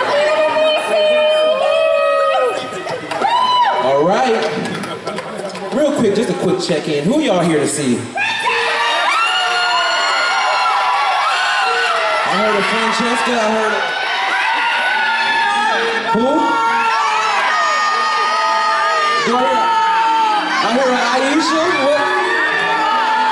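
A man sings into a microphone over loudspeakers.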